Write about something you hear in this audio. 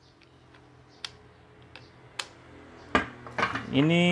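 A plastic part clicks against a table.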